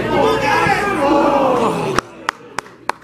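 Football players shout to each other outdoors.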